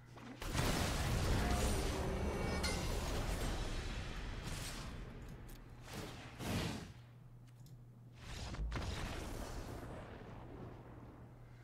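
Magical game sound effects whoosh, swell and fade.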